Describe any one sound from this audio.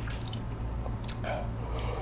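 A man gulps a drink from a glass.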